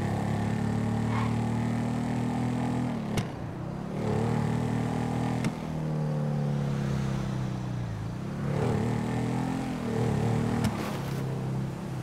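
A motorcycle engine rumbles steadily, its revs rising and falling.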